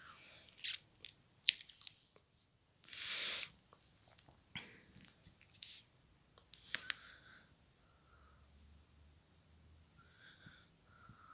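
A hand strokes a cat's fur with soft rustling.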